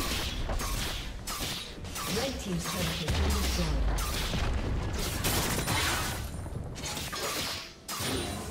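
Magic spells crackle and whoosh in a busy fight.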